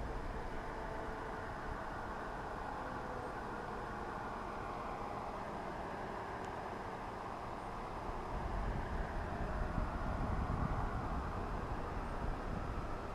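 Wind rushes and buffets loudly, as if high up in the open air.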